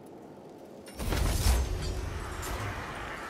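A loud magical burst booms and rumbles.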